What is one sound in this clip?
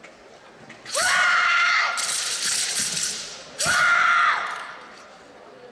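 A young woman lets out sharp, loud shouts in a large echoing hall.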